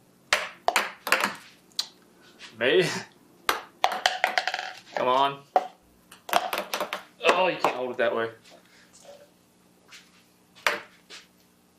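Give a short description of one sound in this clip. Ping pong balls bounce and click on a wooden table.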